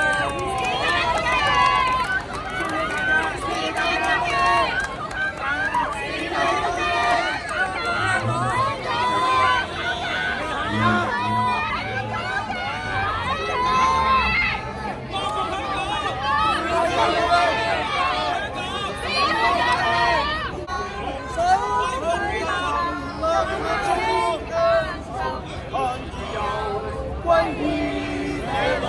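A crowd of men and women chants loudly outdoors.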